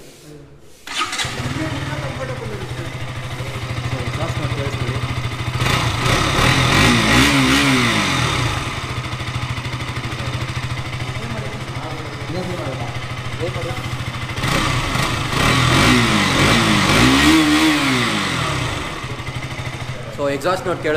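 A motorcycle engine idles close by and revs up loudly twice.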